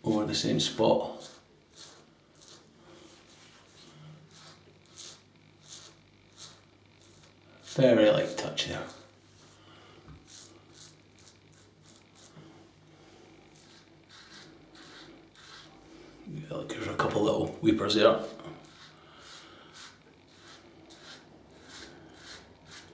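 A razor scrapes across stubble in short strokes.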